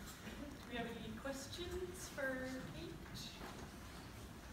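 An elderly woman speaks calmly through a microphone in an echoing hall.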